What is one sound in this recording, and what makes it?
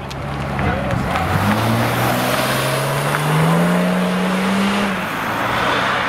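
A sports car engine rises steadily in pitch as the car accelerates away.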